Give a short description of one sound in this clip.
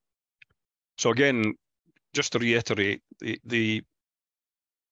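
A man speaks calmly through a microphone on an online call.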